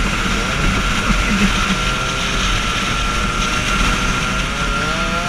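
A scooter engine drones steadily up close.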